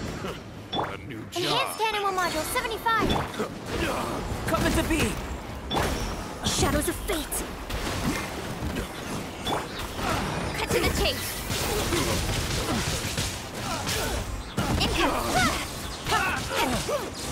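Sword strikes and magic blasts crash rapidly, over and over.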